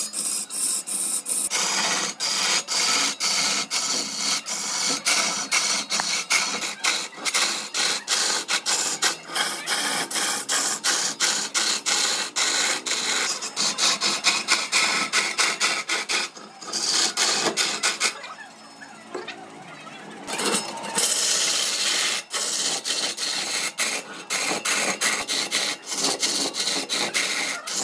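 A chisel scrapes loudly and roughly against spinning wood on a lathe.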